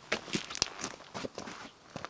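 Footsteps crunch on grass close by.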